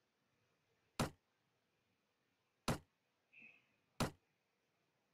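Sharp clicks sound as game menus are opened and closed.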